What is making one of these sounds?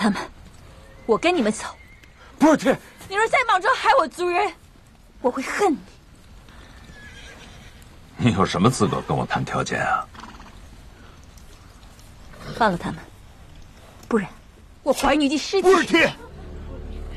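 A young woman speaks tensely up close.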